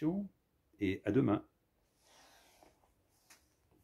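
A book closes with a soft thump.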